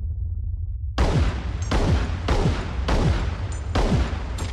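Pistol shots crack in quick succession.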